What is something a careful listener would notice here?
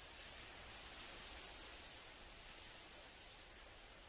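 Wind rustles through tall grass.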